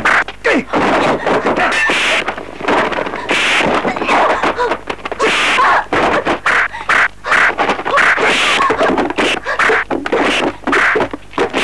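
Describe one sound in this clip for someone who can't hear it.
Blows land with sharp thuds and slaps during a fight.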